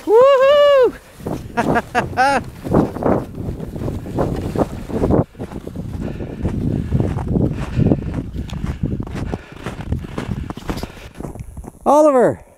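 A plastic sled scrapes and hisses over snow.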